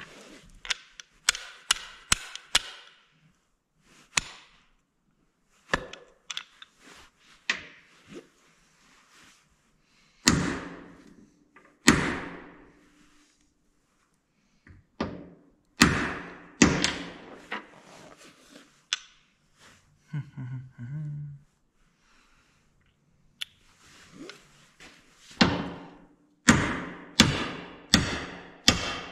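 Metal parts click and clink together in a man's hands.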